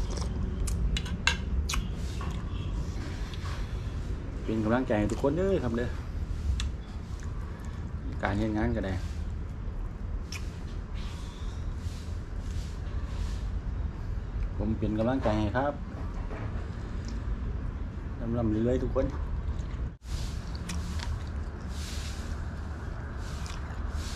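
A man chews food noisily, with wet smacking sounds.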